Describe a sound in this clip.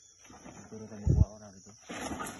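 A blade chops into a plant stem with a dull thud.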